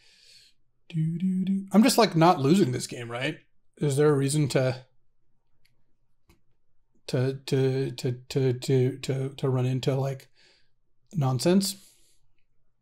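A man talks calmly and casually into a close microphone.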